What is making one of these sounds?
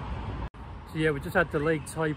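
A middle-aged man speaks close to the microphone, outdoors.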